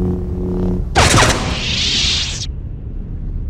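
A lightsaber ignites with a harsh crackling burst.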